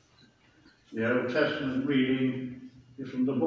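A man reads aloud, echoing through a large hall.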